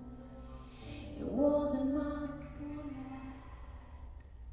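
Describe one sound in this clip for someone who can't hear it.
A woman sings into a microphone with a sustained, rising voice.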